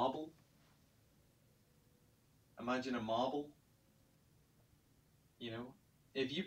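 A young man speaks calmly in short phrases, as if explaining.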